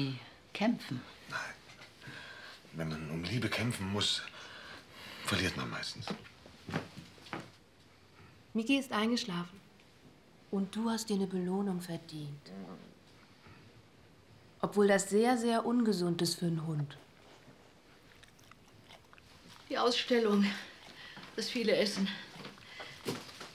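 An elderly woman speaks calmly nearby.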